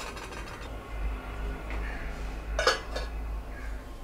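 A metal lid clinks down onto a steel pot.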